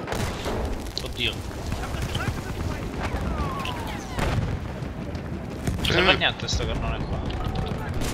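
Loud explosions boom and roar nearby.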